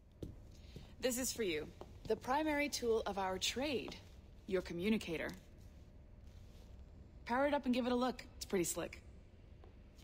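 A young woman speaks calmly and warmly, close by.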